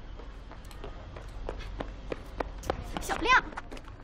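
Footsteps tap on hard pavement outdoors.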